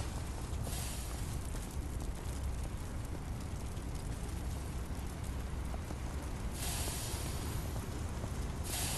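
A fire roars with a low, steady rumble.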